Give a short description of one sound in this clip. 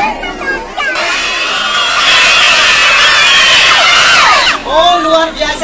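A crowd of young children shouts together loudly.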